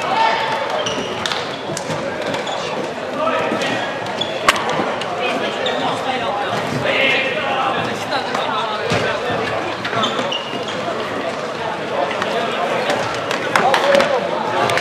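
A crowd of young players chatters and calls out in a large echoing hall.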